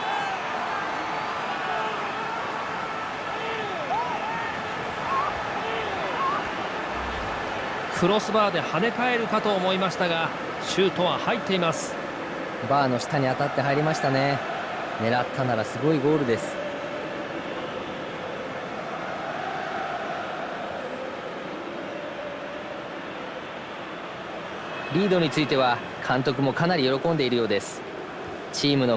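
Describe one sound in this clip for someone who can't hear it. A large stadium crowd cheers and roars steadily.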